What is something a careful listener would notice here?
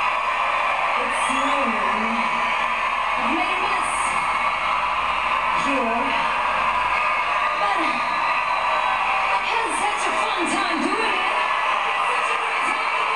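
A woman sings into a microphone through loud speakers.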